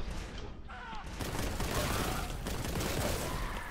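Rapid gunfire blasts and rattles.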